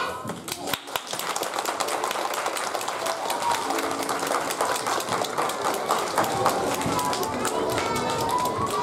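A crowd of children chatters and murmurs in a large echoing hall.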